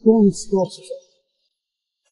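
A man speaks warmly up close.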